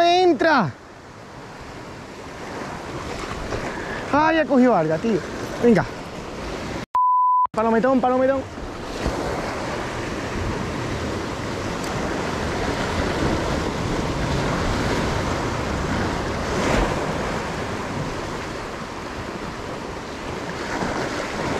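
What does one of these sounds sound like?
Waves surge and crash against rocks.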